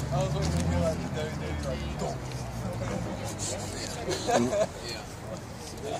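A crowd of men talk and chatter nearby, outdoors.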